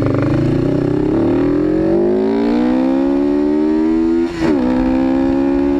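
A motorcycle engine revs up and rises in pitch as it accelerates.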